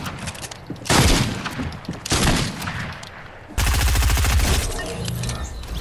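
A gun fires in loud bursts.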